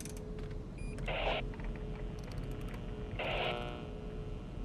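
A control panel beeps as buttons are pressed.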